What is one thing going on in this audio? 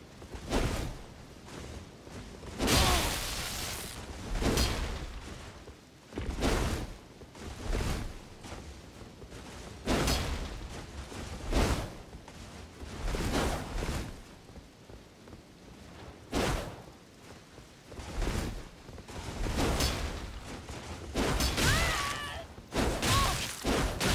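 Swords clash and slash again and again in a fight.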